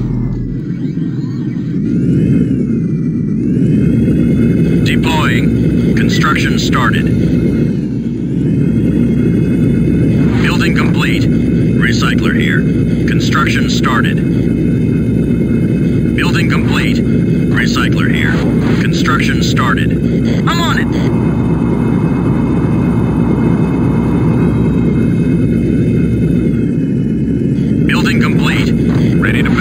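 A vehicle engine drones steadily as it drives over rough ground.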